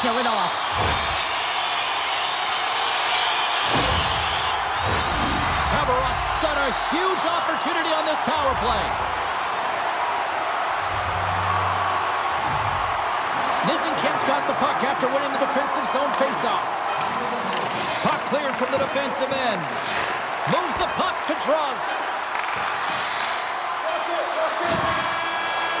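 A hockey puck clacks off sticks.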